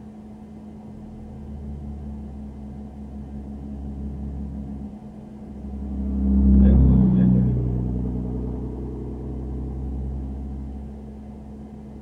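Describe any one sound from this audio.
A pickup truck passes by on the road, rumbling loudly and fading away.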